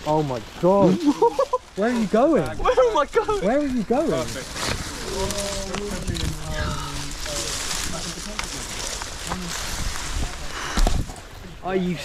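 Branches and leaves rustle and snap as they are pushed aside.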